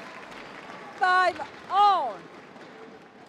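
A young woman shouts loudly twice.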